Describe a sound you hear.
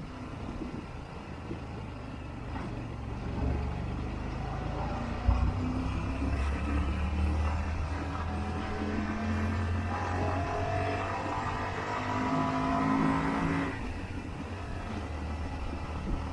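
A motorcycle engine hums steadily and rises and falls in pitch as it accelerates.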